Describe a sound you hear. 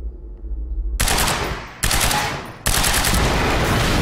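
A gun fires loud rapid shots.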